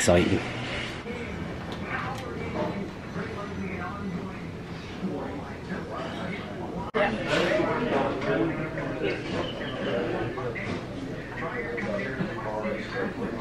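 Several adults chat quietly nearby.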